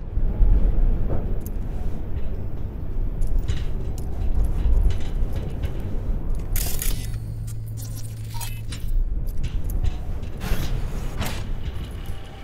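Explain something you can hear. Gunshots bang loudly in an echoing space.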